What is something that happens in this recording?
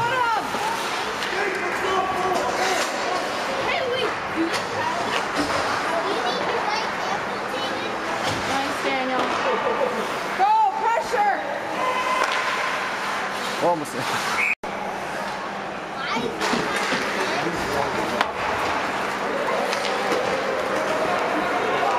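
Skate blades scrape and swish across the ice.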